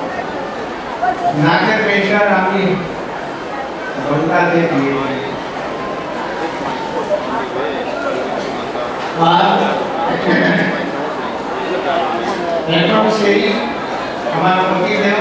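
An elderly man speaks slowly and calmly into a microphone, heard through a loudspeaker.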